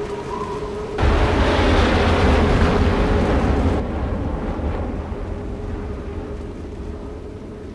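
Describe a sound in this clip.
A huge crash booms and rumbles, then slowly fades.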